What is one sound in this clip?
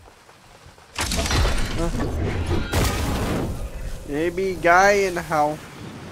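A board skids across ice.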